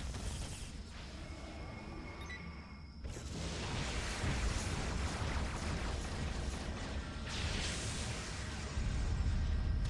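Electric zaps and blasts crackle from a video game's fight.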